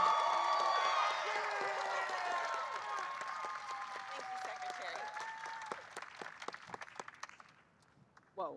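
A crowd cheers and applauds outdoors, fading away.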